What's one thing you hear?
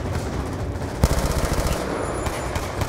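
A rifle fires a rapid burst of shots close by.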